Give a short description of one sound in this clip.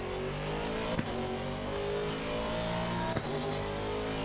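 Gear shifts click sharply.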